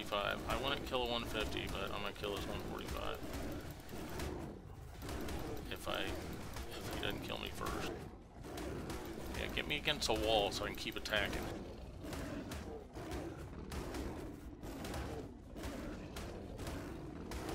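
Heavy blows thud repeatedly against a creature's shell.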